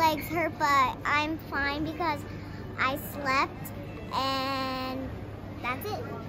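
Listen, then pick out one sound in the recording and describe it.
A young girl talks close by in a high, lively voice.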